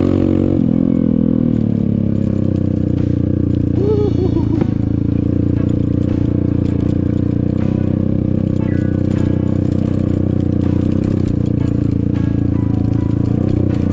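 Tyres rumble and bump over a rough dirt track.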